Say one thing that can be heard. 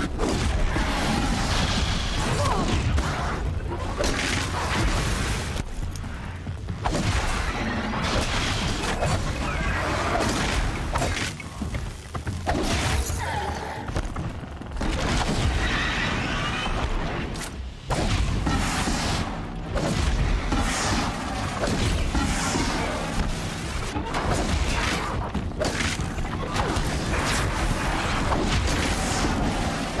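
Robotic machines screech and roar in battle.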